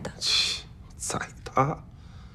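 A man speaks in a pained, whining voice.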